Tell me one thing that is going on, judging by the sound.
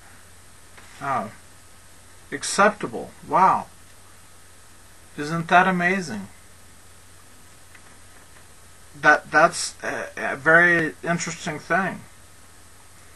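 A man speaks calmly in short bursts, close to a microphone.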